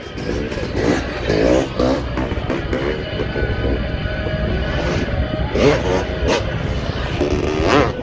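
People in a crowd nearby chatter outdoors.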